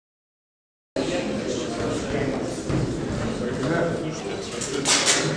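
A crowd chatters in an echoing hall.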